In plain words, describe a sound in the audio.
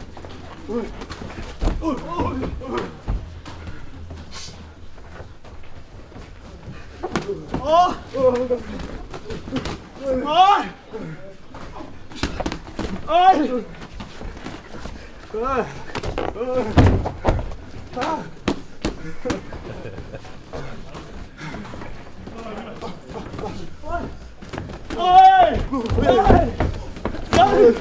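Padded gloves thud against pads and bodies.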